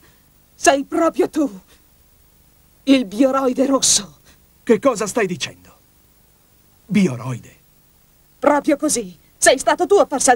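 Another young woman answers sharply.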